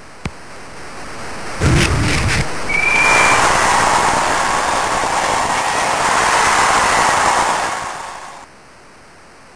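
A crowd roars and cheers in a video game.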